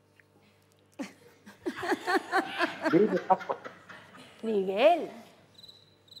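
An older woman laughs heartily into a microphone.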